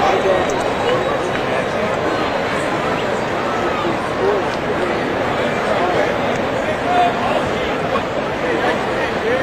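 A large crowd murmurs and chatters steadily in an open stadium.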